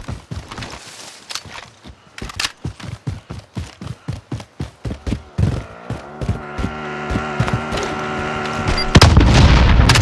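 Footsteps thud quickly over ground.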